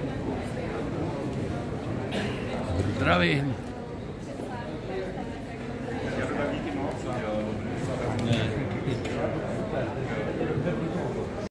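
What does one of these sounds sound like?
A crowd of men and women chatter nearby in a room.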